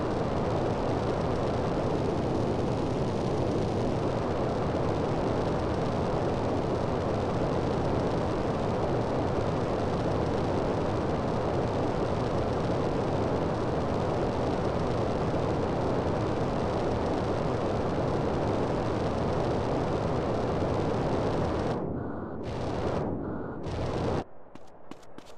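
A jetpack roars steadily with a loud rushing hiss.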